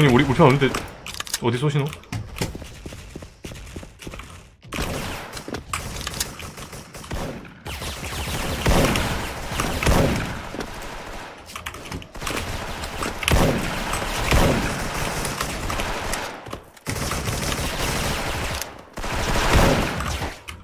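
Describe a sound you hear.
A sniper rifle fires sharp, booming shots now and then.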